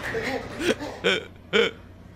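A young man laughs in short bursts close to a microphone.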